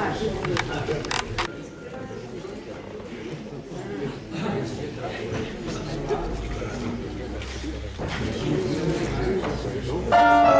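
A saxophone begins to play a sustained note.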